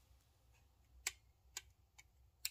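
A utility knife cuts through a thin gasket with soft clicks.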